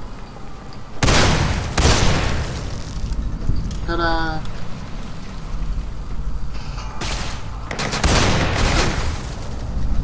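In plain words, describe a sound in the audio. A shotgun fires with heavy booms.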